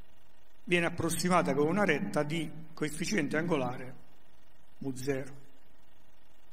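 An older man speaks calmly.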